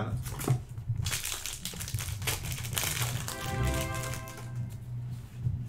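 A foil wrapper crinkles.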